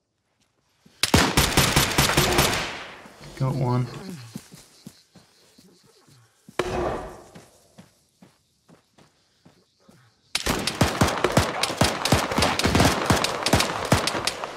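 A rifle fires rapid bursts of gunshots close by.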